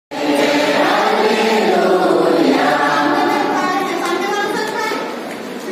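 A group of children and adults sing together loudly.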